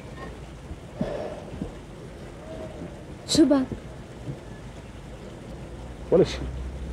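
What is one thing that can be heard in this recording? A woman speaks calmly in reply close by.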